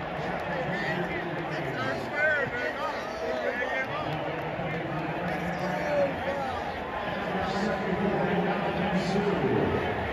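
A huge stadium crowd roars and cheers loudly outdoors.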